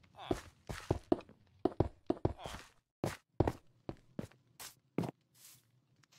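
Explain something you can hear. Blocks thud softly as they are placed down.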